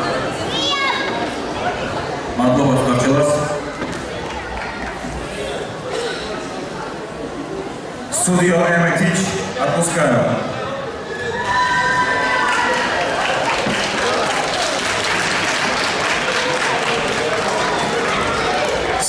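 An audience claps in a large echoing hall.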